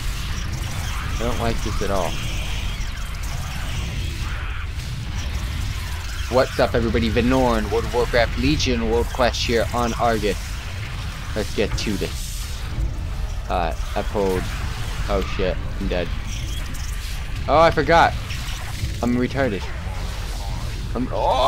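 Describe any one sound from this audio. A young man talks casually and with animation, close to a microphone.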